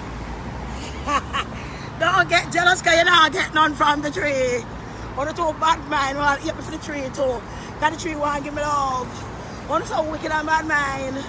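A woman talks loudly and with animation close by, outdoors.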